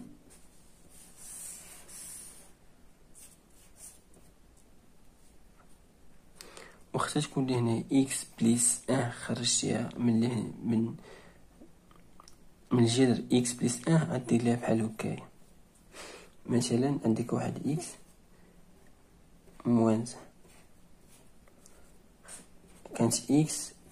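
A felt-tip marker scratches across paper.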